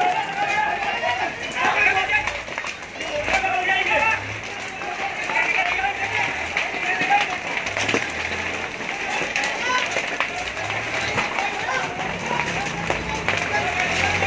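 A large fire roars and crackles nearby.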